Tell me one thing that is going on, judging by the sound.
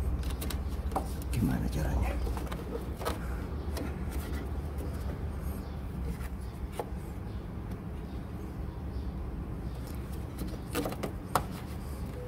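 Plastic clicks and knocks softly as a small part is twisted by hand.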